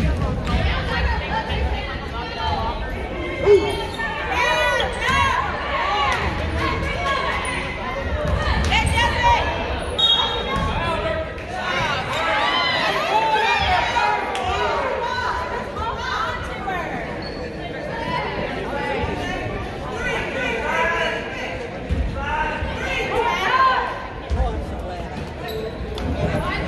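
A crowd of spectators talks and calls out in an echoing gym.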